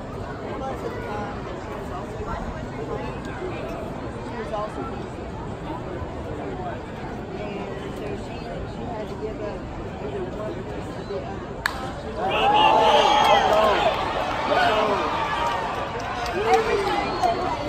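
A crowd of spectators murmurs and chatters outdoors.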